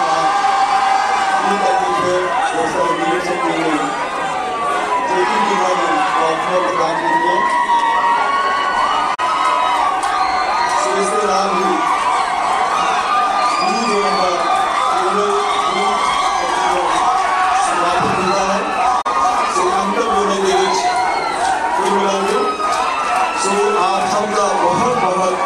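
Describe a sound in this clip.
A group of women sing loudly together in a lively chorus.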